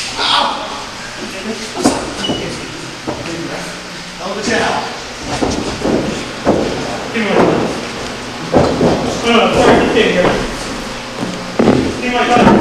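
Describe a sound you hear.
A small crowd of men shouts and cheers in an echoing hall.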